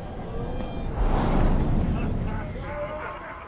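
A puff of smoke bursts with a soft whoosh.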